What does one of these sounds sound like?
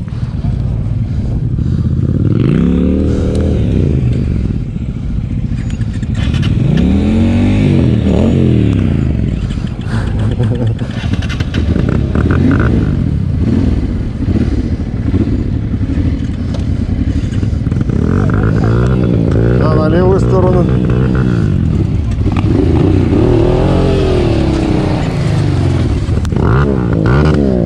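A motorcycle engine idles and revs up and down close by.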